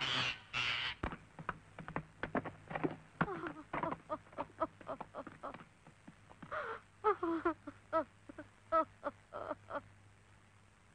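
A horse's hooves clop on hard ground.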